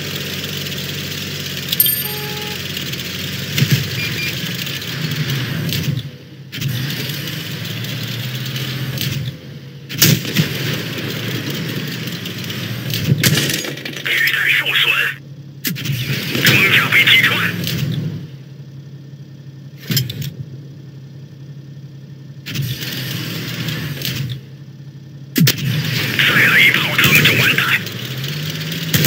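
A light tank's engine rumbles.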